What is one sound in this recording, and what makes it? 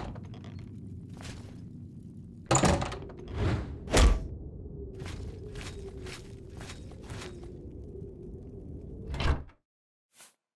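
A low hum drones steadily in an echoing cave.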